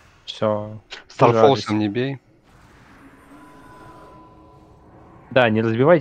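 Spells and combat effects ring out faintly.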